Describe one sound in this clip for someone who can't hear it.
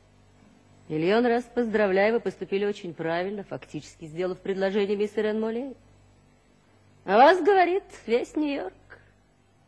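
A woman speaks in reply.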